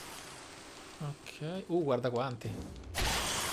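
A young man speaks with animation, close to the microphone.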